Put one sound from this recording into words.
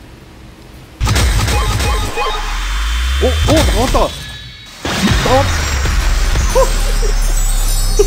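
Loud magical bursts and shimmering chimes ring out.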